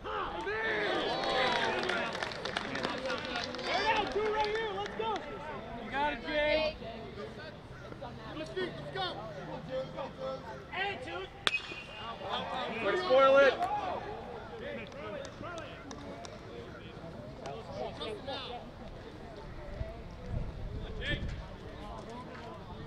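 A crowd of young men and spectators chatter and cheer outdoors.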